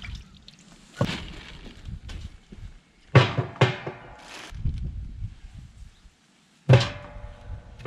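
Bones knock and thud into a metal pot.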